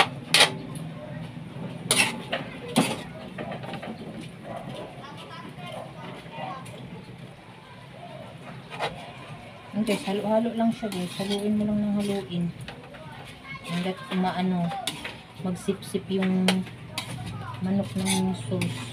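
A spatula scrapes and clatters against a metal pan.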